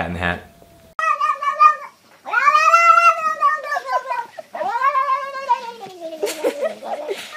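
A cat yowls loudly in long, wavering cries.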